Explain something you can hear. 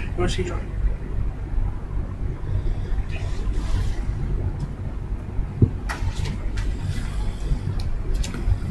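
Fabric rustles and bumps close against a microphone.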